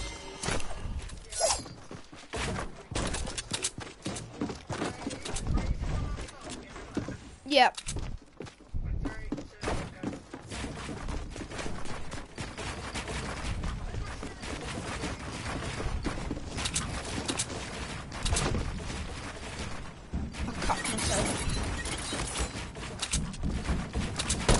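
Game building pieces snap into place again and again.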